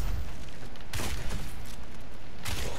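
A fireball whooshes past with a roar.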